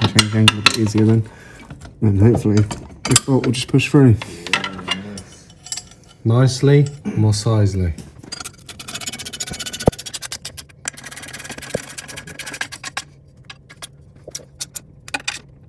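A ratchet wrench clicks against metal bolts.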